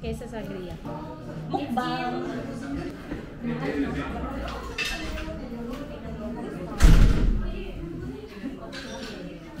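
Several people chat quietly.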